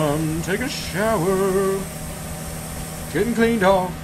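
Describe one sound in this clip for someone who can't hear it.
Steam hisses from a pipe.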